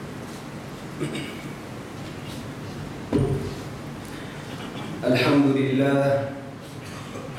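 A man speaks slowly and calmly into a microphone in a slightly echoing room.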